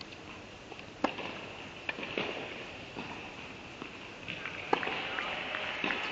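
A tennis ball bounces on a hard floor.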